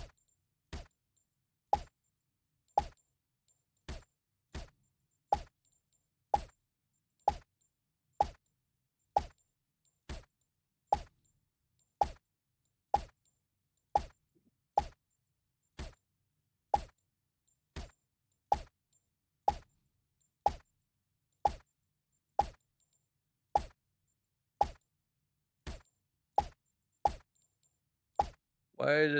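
A silenced pistol fires single muffled shots at an even pace.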